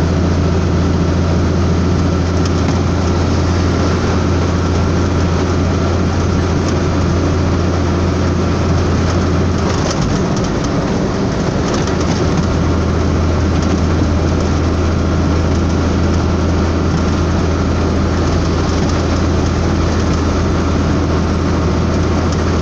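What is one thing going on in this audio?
A truck engine drones steadily as it drives at speed.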